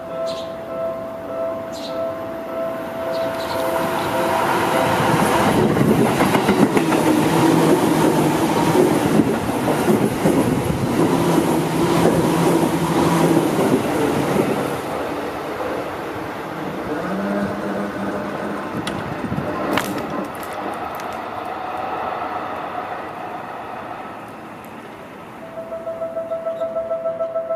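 A level crossing bell clangs in a steady rhythm.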